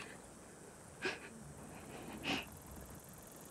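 A young woman gasps and breathes heavily close by.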